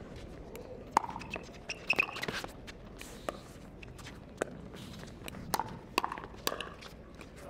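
Paddles hit a plastic ball back and forth with sharp hollow pops.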